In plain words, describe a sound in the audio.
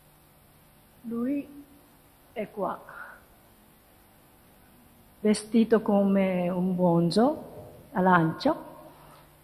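A woman speaks into a microphone, in short phrases with pauses.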